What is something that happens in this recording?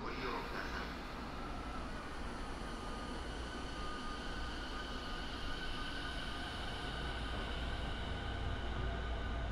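A train's motor hums and whines as the train pulls away.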